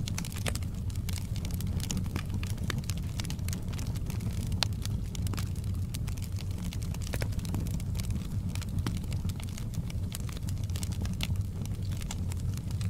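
Logs crackle and pop in a burning fire.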